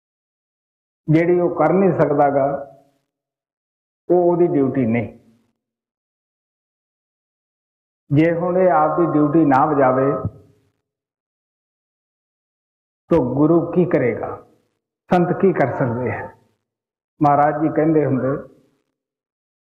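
An elderly man speaks slowly and calmly in short phrases into a microphone, with pauses between them.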